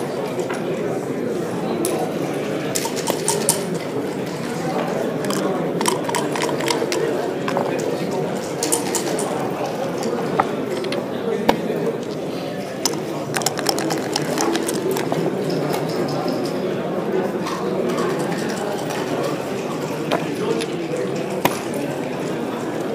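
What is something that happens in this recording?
Plastic game pieces click against a wooden board.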